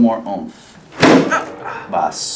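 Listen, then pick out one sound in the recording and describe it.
A sharp thump sounds as a body is pressed down firmly.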